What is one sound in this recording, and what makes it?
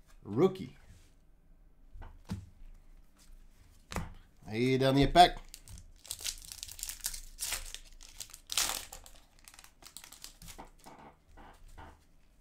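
Trading cards shuffle and rustle in a man's hands.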